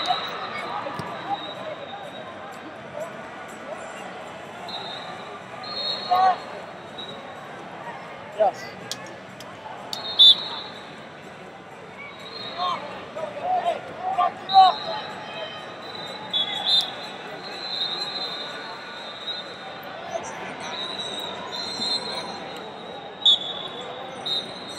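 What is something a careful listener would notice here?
Shoes squeak on a wrestling mat.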